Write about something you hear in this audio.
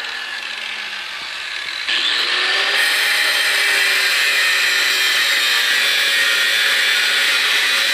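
An angle grinder whines as it spins.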